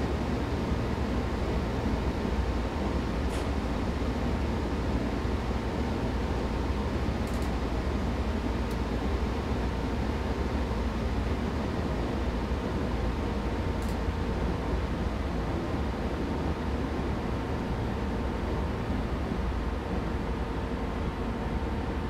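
Train wheels roll and clatter on the rails.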